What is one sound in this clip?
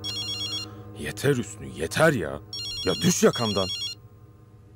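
A man speaks in a low, tense voice close by.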